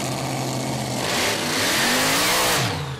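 A dragster engine roars louder as the car pulls away.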